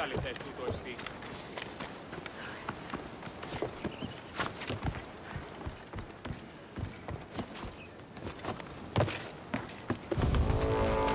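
Quick footsteps patter on the ground and on wooden boards.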